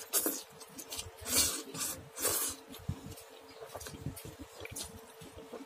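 A man chews wetly close by.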